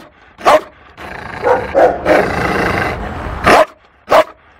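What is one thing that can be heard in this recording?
A bear growls low between barks.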